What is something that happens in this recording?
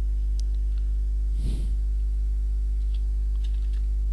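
A rifle is picked up with a short metallic clatter.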